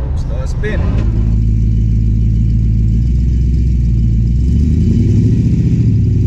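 A car engine roars loudly outside.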